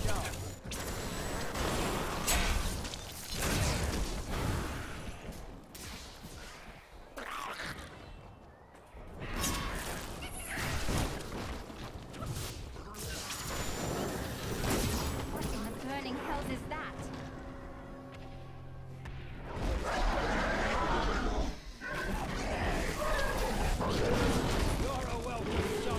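Magic spells blast and crackle in a fast fight.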